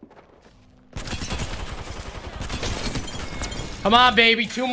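Rapid gunfire rattles in a game.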